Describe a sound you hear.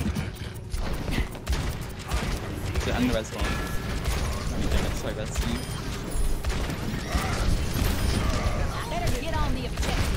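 Gunshots fire rapidly in a video game.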